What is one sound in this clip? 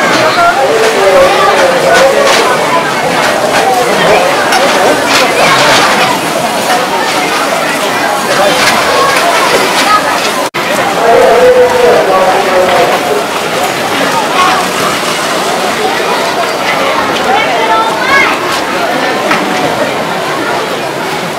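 A large outdoor crowd of children and adults chatters and calls out.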